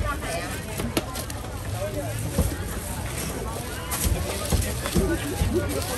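A plastic bag crinkles and rustles as vegetables are dropped into it.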